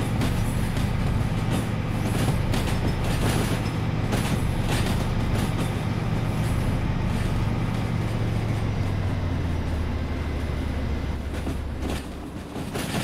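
A diesel engine rumbles steadily and then falls away.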